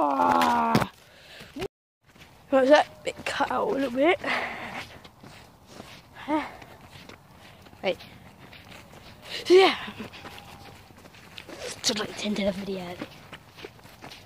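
A young boy talks loudly and with animation close by.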